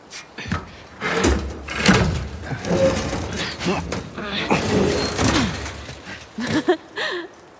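A metal hatch clanks and scrapes as it is pried open.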